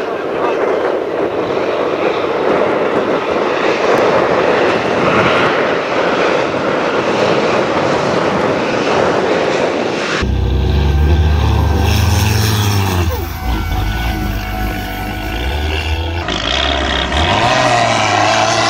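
A heavy truck engine roars as the truck races over rough ground.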